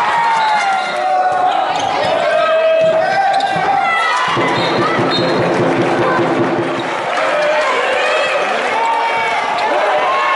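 Young women shout and call out to each other in a large echoing hall.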